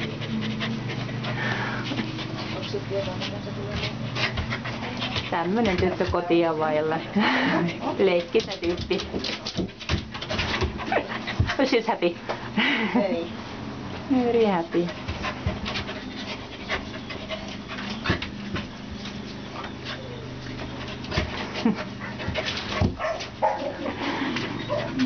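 A dog whines and yelps excitedly close by.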